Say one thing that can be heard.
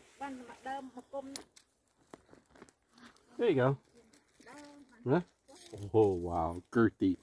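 A gloved hand scrapes and rustles through soil and dry pine needles.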